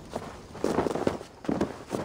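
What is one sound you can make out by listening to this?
Footsteps crunch on soft ground.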